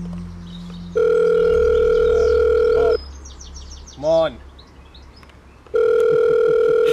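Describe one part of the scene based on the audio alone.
A phone rings with a loud, steady electronic tone.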